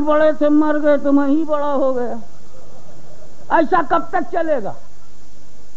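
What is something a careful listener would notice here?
An elderly man chants loudly through a microphone and loudspeakers, in long drawn-out phrases.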